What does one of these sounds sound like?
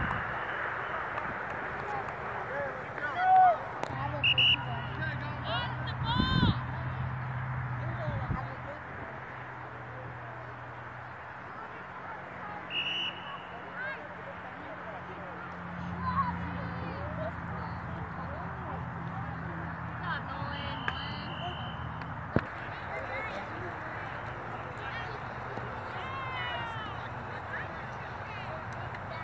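A crowd of children and adults shouts and cheers outdoors, some distance away.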